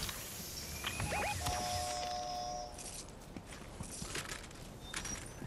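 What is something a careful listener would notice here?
Footsteps patter on dirt as a game character runs.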